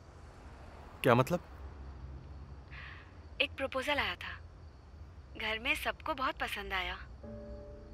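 A young woman speaks through a phone call.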